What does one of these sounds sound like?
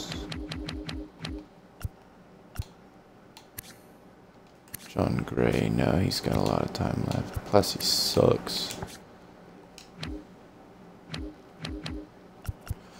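Short menu ticks sound in quick bursts as selections move.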